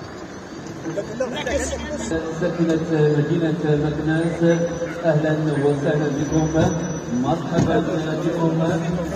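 Men talk and greet each other close by.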